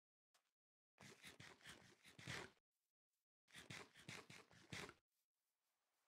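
Someone munches and crunches on food.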